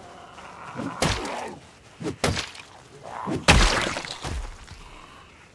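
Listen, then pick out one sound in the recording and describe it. Heavy blows thud against a body in quick, hard hits.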